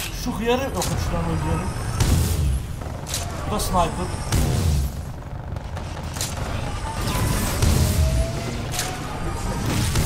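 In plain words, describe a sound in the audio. Explosions rumble deeply.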